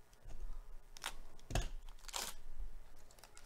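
Gloved hands crinkle and tear a foil card wrapper.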